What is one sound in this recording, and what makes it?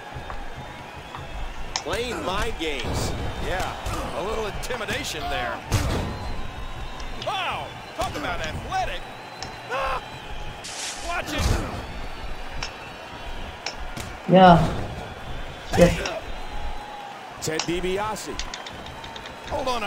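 Heavy blows and slams land with loud thuds.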